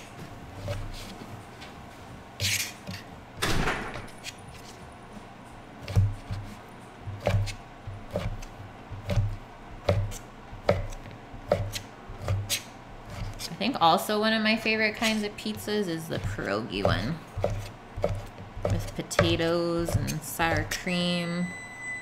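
A knife chops repeatedly on a wooden cutting board.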